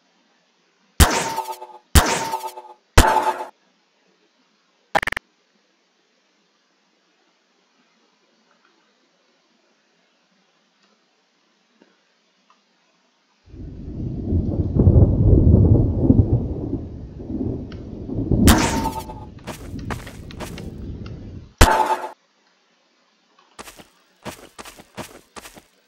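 A tool gun fires with short electronic zaps.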